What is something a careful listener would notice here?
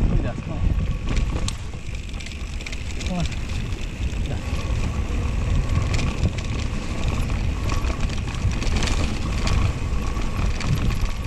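Bicycle tyres roll and bump over a grassy dirt trail.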